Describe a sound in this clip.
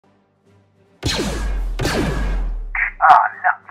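A toy blaster fires two zapping shots.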